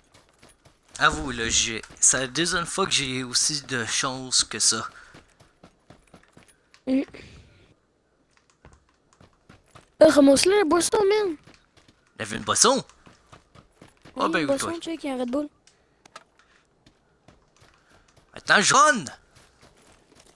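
A young man talks with animation into a close microphone, in bursts.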